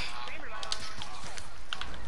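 Gunshots crack in a video game.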